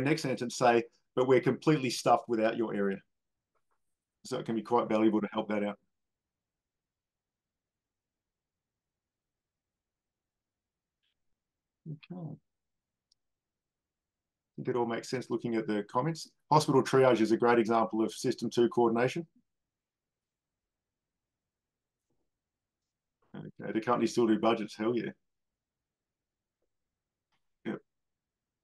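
A man speaks calmly in bursts through an online call, with long pauses.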